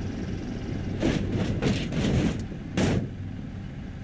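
A tractor's tyres thump onto a trailer's ramp.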